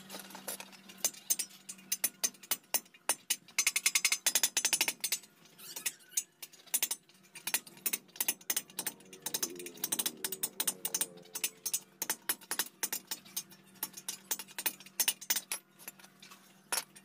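A hammer strikes metal repeatedly with sharp clanks.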